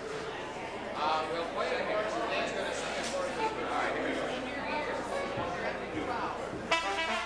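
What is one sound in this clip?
A trombone blares loudly.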